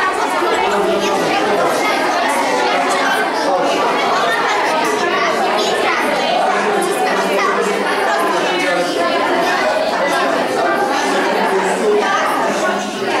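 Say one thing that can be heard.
Many children chatter and talk at once nearby.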